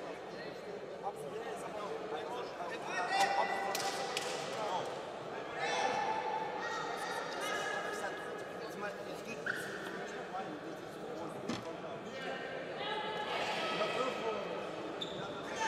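A crowd chatters and calls out in a large echoing hall.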